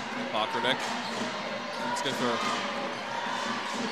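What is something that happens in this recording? A basketball bounces on the court.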